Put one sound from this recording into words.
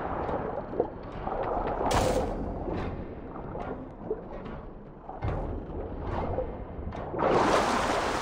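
Water bubbles and gurgles in muffled bursts.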